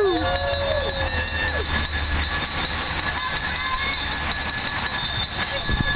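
A pack of racing bicycles whirs past.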